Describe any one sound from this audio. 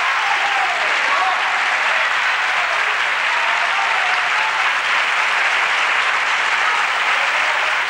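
A crowd of men and women cheers and shouts.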